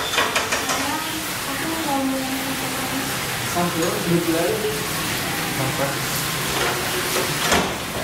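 A young woman speaks quietly nearby.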